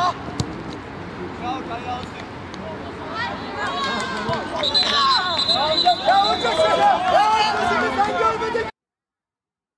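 Young men shout excitedly across an open sports field.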